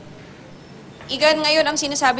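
A young woman speaks clearly into a microphone, as if reporting.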